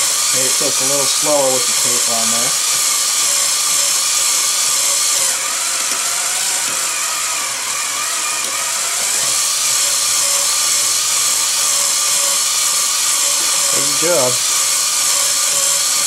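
An electric drill whirs steadily as it drives a bead roller.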